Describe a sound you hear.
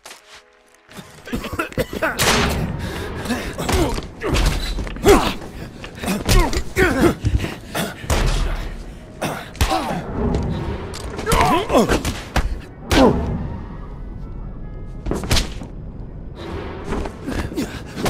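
A man shouts angrily nearby.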